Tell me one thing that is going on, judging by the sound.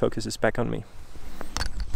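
A young man speaks briefly and calmly, close by.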